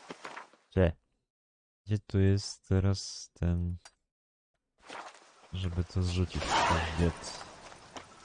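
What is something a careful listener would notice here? A man talks into a close microphone in a lively way.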